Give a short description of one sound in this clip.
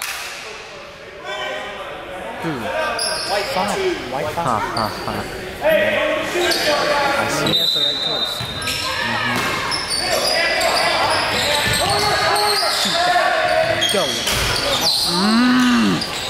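A basketball bounces on a hardwood floor with echoing thuds.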